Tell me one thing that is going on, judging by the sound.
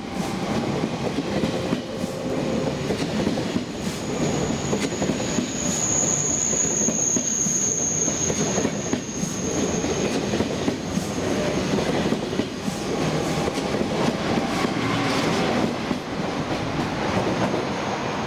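A high-speed train rumbles and hums steadily as it pulls slowly past.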